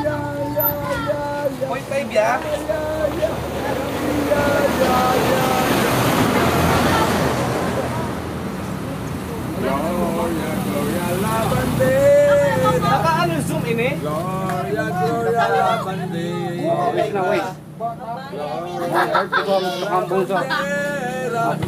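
A group of men and women sings together nearby.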